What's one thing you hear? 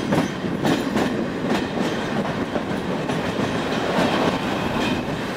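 A train rumbles and rattles along the tracks, heard from an open window.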